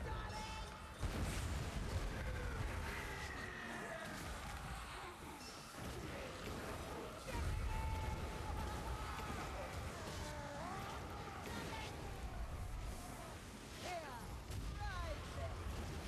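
Blades hack into flesh with heavy thuds.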